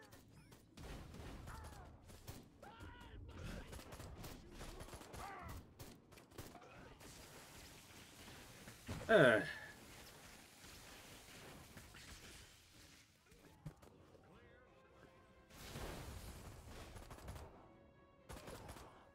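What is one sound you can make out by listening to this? A young woman talks with animation into a microphone.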